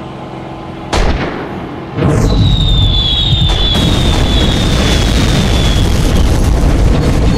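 Bombs explode with loud, rumbling blasts.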